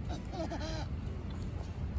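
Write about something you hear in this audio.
A little girl squeals briefly.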